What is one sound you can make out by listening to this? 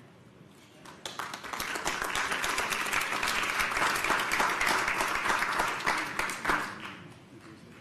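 A small crowd applauds loudly, then the clapping dies away.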